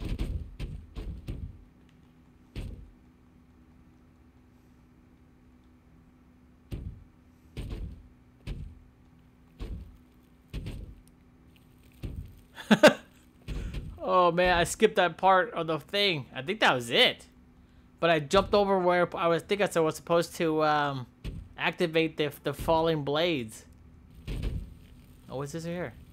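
Soft thuds sound as a figure climbs and lands on ledges.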